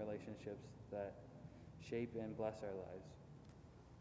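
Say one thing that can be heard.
A man speaks calmly into a microphone in a large echoing hall.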